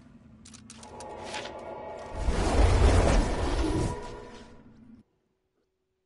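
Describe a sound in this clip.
A magical teleport swells into a deep rushing whoosh and fades.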